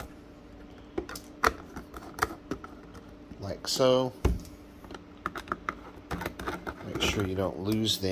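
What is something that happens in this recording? A screwdriver clicks and scrapes against small screws.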